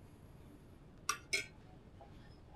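A metal spoon clinks against a pot.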